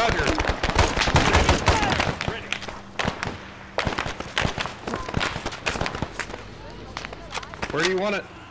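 Gunshots crack rapidly in bursts.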